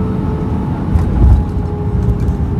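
The wheels of an airliner thump onto the runway.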